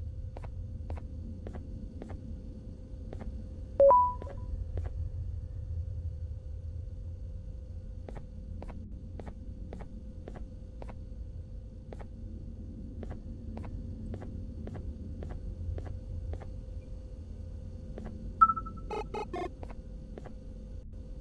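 Footsteps thud steadily on a wooden floor.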